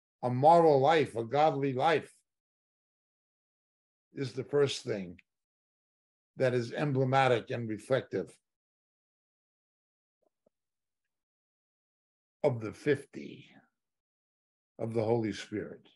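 An older man talks calmly into a microphone close by, with pauses between phrases.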